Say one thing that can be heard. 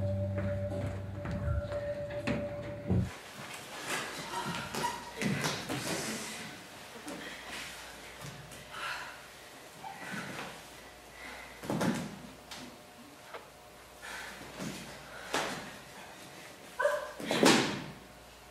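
Bare feet thump and slide on a wooden stage floor.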